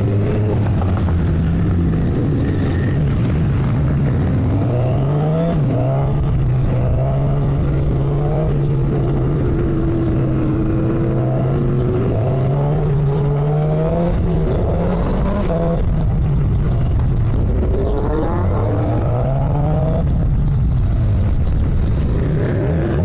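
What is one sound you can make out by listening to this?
A motorcycle engine hums steadily and rises and falls in pitch as the rider shifts.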